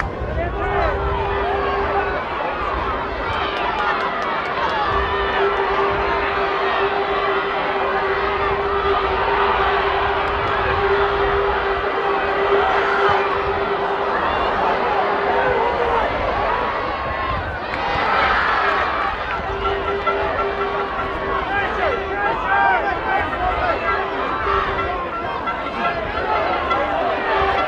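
A large crowd murmurs and shouts in an open-air stadium.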